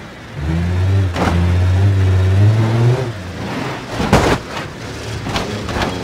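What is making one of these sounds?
Metal clanks sharply as a car drives onto a ramp.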